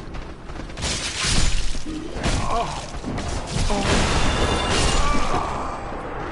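Metal weapons clash and strike bodies in a fight.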